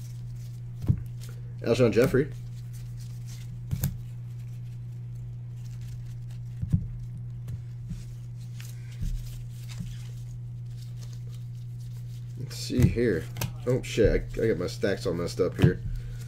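Trading cards shuffle and flick in gloved hands.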